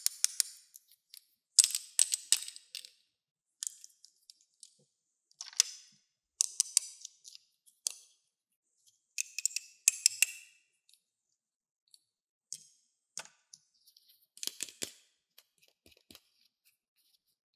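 Plastic toy pieces click and rattle as they are handled.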